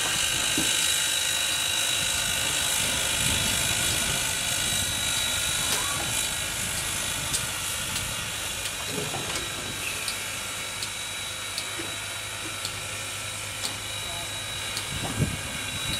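A steam locomotive hisses steadily.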